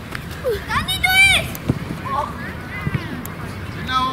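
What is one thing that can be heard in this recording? A football thuds as young boys kick it outdoors.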